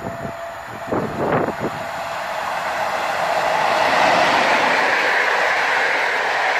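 A train approaches and roars past close by, its wheels clattering on the rails.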